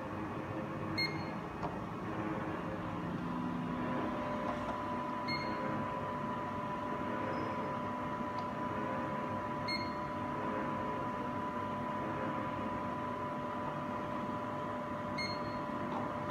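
A measuring machine beeps briefly several times.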